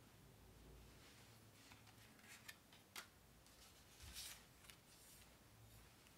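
Paper cards rustle and slide on a table.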